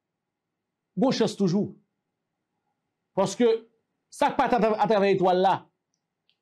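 A man speaks with animation into a close microphone, in short bursts.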